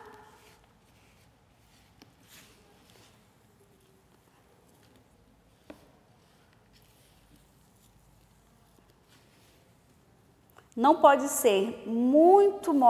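Dry, crumbly soil rustles softly as fingers rub and crumble it.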